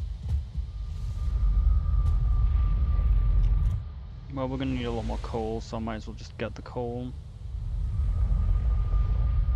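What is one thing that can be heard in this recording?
A deep, rumbling whoosh swells and swirls.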